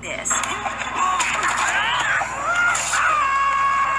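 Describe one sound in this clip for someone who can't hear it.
A young boy's cartoon voice yells angrily.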